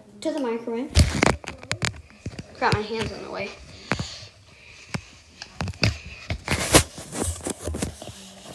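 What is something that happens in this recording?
Fabric rubs and thumps against the microphone.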